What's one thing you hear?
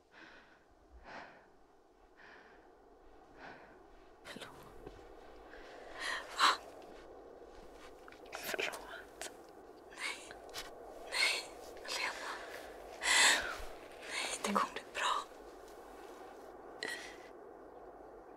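A young woman gasps and breathes raggedly in pain, close by.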